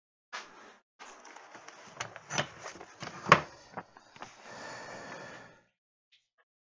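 Objects clatter and knock on a workbench.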